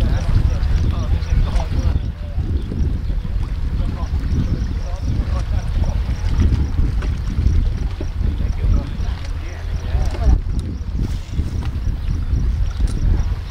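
Small waves lap against rocks at the shore.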